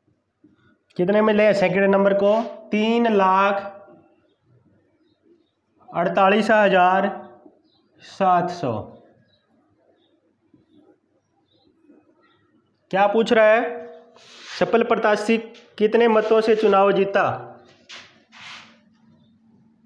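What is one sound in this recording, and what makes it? A man speaks clearly and steadily nearby, in short bursts.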